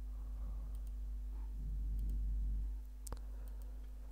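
A computer mouse clicks once.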